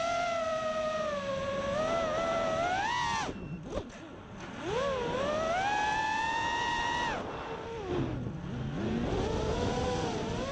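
Drone motors whine close by, rising and falling in pitch as the drone speeds up and slows down.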